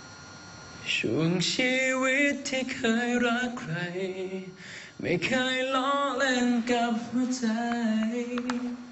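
A young man sings into a microphone, heard through loudspeakers.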